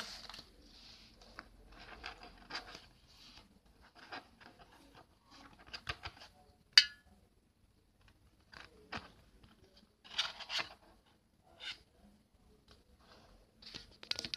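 Cards rustle and slide against one another as they are handled.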